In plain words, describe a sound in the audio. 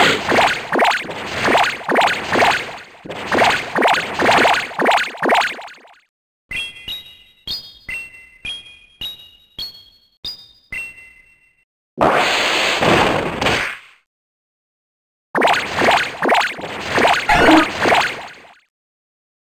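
Rapid thumping blows sound in a fast rhythm.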